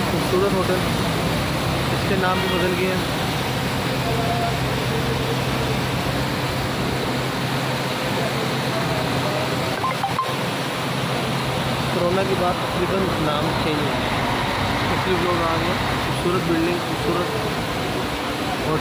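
Several men talk nearby in a crowd outdoors.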